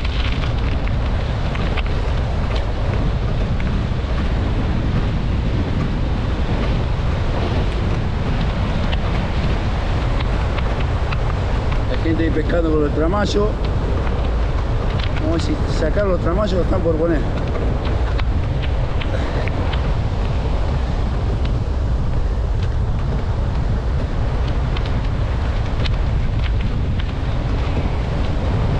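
Waves break and wash onto the shore nearby.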